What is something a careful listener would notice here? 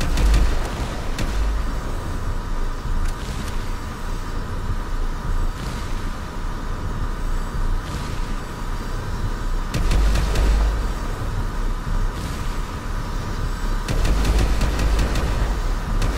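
Gunshots crack in short, rapid bursts.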